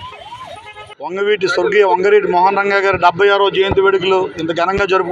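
A man speaks loudly and emphatically into microphones.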